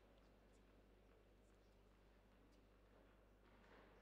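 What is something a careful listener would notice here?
A racket strikes a tennis ball with a sharp pop.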